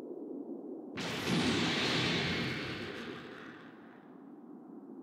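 A rush of air sweeps past and fades.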